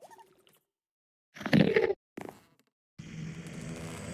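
A sword strikes a creature with a sharp hit.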